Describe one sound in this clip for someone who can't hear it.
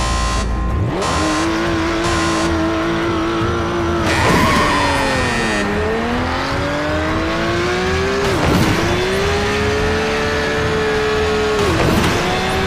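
A race car engine roars as it speeds up through the gears.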